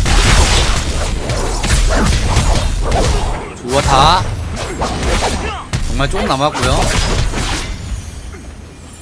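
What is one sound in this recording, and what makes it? Magic effects whoosh in a game.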